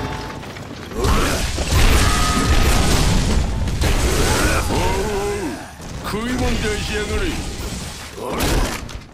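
A heavy sword swings and slashes with loud whooshes and impacts.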